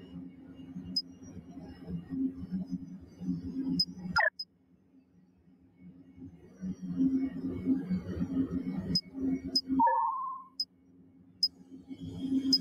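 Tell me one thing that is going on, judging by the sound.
Short, sharp interface clicks sound as menu selections change.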